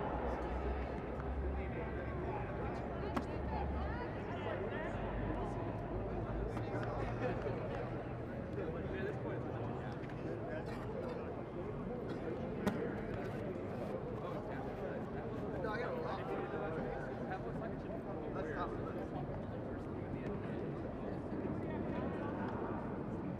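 Several men and women call out and talk across a large, echoing stadium.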